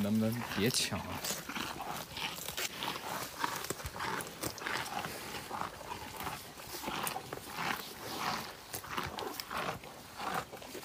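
Water buffaloes tear and munch leafy branches up close.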